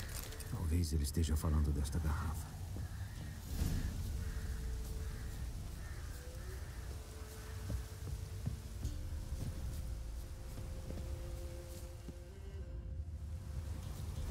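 Footsteps crunch on rough ground outdoors.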